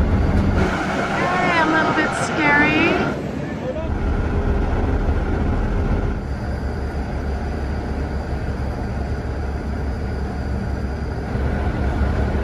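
Water churns and swirls nearby.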